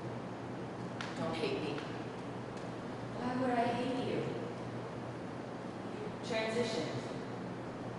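A young woman speaks quietly in reply.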